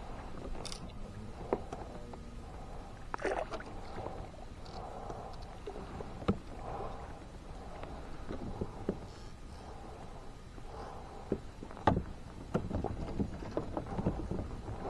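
Water sloshes and laps against a small boat.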